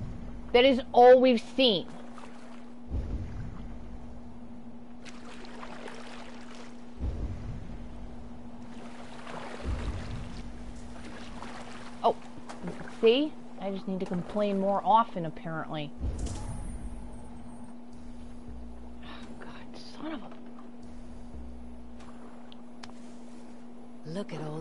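Water laps gently against a small wooden boat.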